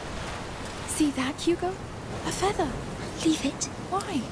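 A young boy speaks.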